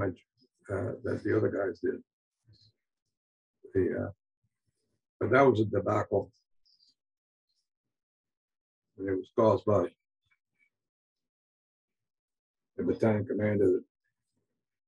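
An elderly man speaks calmly in short phrases, heard through an online call.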